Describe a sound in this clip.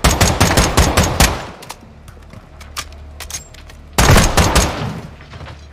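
A rifle fires rapid bursts of shots that echo in a confined space.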